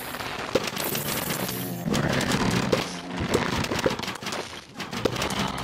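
Cartoon pea shooters fire peas with quick popping game sounds.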